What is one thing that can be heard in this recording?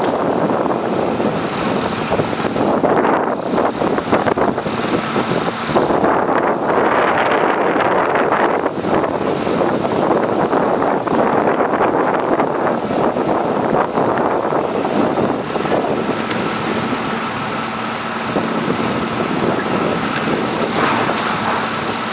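A house fire roars and crackles loudly outdoors.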